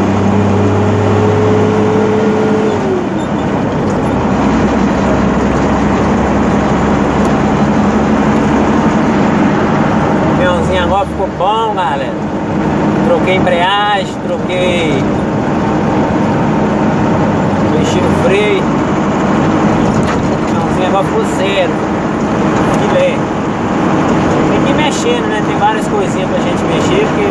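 A vehicle's engine drones steadily while driving.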